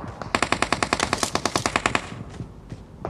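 An automatic rifle fires a rapid burst of shots.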